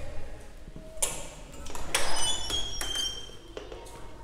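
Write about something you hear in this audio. A glass door clicks and swings open.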